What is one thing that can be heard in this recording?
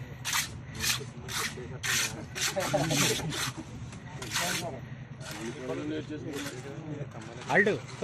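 A trowel scrapes over wet concrete.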